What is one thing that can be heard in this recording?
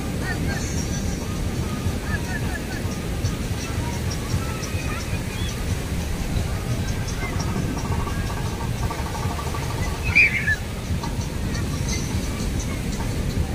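Many people chatter in the distance.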